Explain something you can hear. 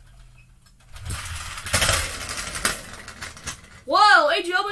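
A toy car rolls across a wooden floor.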